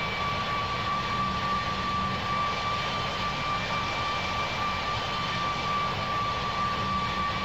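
A jet engine drones steadily with a faint high whine.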